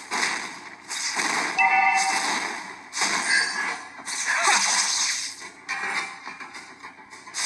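Video game battle effects burst and whoosh from a small phone speaker.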